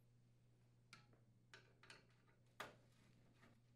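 A screwdriver clicks faintly against metal.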